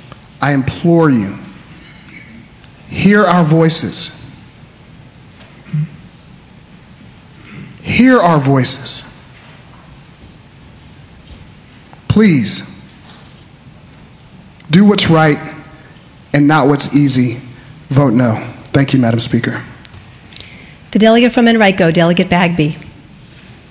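A man speaks calmly into a microphone, in short phrases with pauses.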